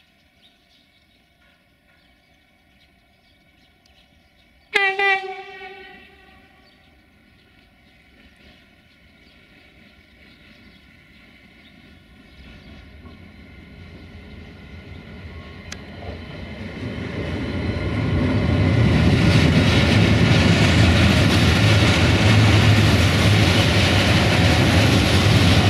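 A freight train approaches, its rumble building to a loud roar as it passes close by.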